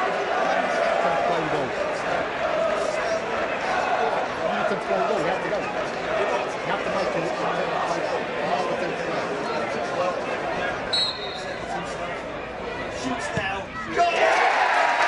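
A large crowd murmurs and chants outdoors.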